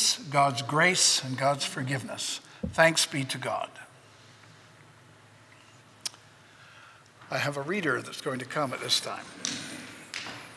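An older man speaks calmly through a microphone in an echoing hall.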